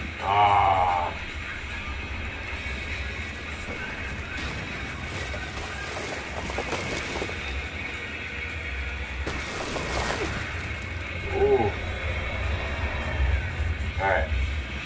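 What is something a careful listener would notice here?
Skis scrape and hiss steadily over snow.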